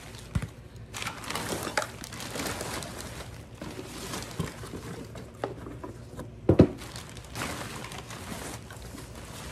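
A plastic bin bag rustles and crinkles as items are pulled from it.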